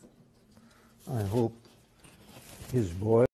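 An elderly man speaks with emphasis into a microphone.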